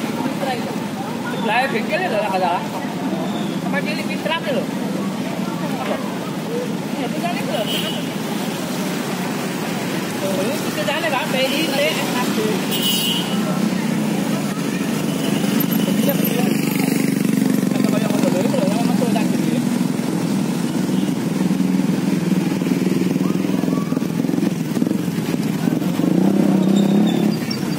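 Motorcycle engines idle and rumble close by.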